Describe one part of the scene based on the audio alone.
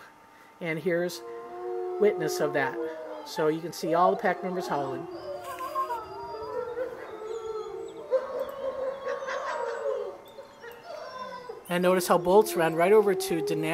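Several wolves howl together close by, in long rising and falling wails.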